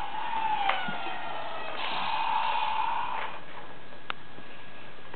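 Plastic toy parts click sharply.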